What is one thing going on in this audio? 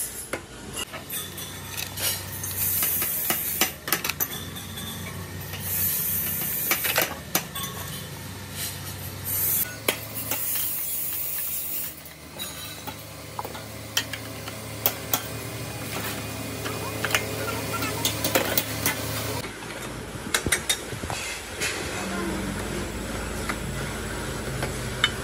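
Metal parts clink and rattle as they are fitted together.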